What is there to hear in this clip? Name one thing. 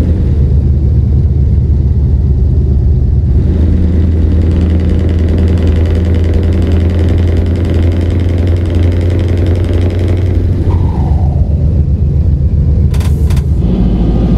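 A truck's diesel engine drones steadily, rising and falling with speed.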